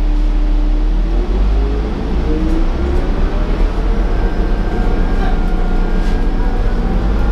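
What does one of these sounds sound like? A bus engine whines, rising in pitch as the bus speeds up.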